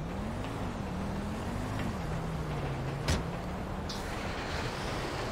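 A truck engine idles and revs up and down.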